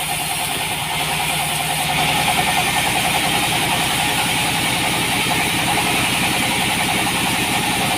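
A band saw whines loudly as it cuts through a wooden log.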